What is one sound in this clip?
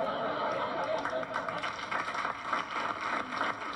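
A crowd of people laughs.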